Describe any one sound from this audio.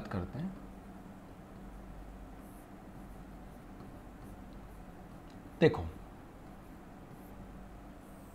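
A marker squeaks faintly as it writes on a board.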